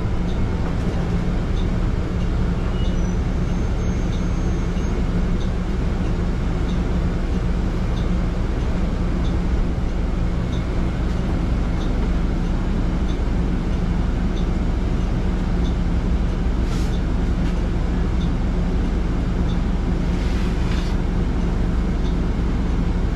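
A bus engine rumbles steadily while the bus moves slowly.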